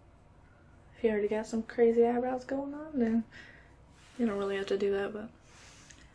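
A young woman speaks close by, calmly.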